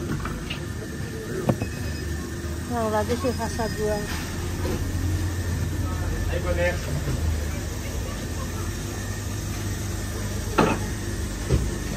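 Refrigerated display cases hum steadily.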